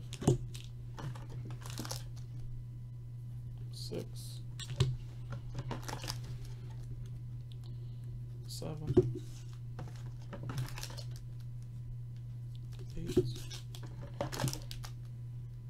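Plastic card wrappers crinkle and rustle as hands handle them.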